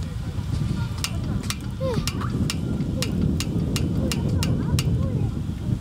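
A hand-cranked device clicks sharply at a steady pace.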